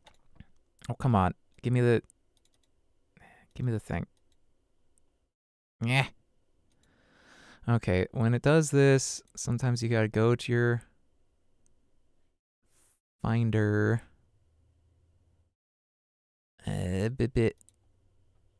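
A man speaks casually into a close microphone.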